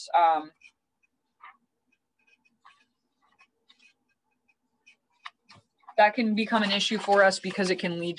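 A woman speaks calmly through a computer microphone.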